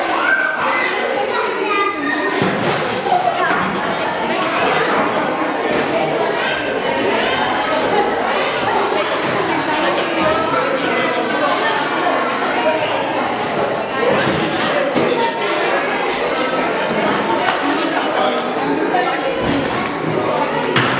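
Young children chatter and shout in a large echoing hall.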